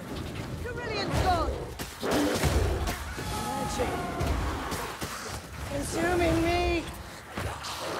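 Monsters snarl and shriek as they attack.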